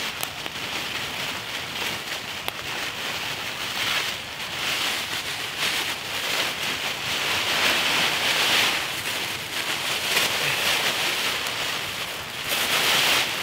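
A foil blanket crinkles and rustles as it is unfolded.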